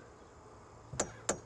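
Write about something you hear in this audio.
A hammer taps twice on metal.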